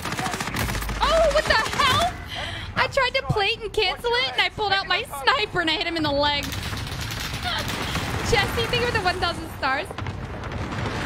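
A young woman talks animatedly into a close microphone.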